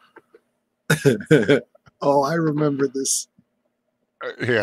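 A man laughs through a close microphone.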